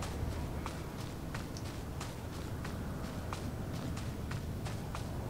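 Footsteps tap at a steady, even pace on a hard floor.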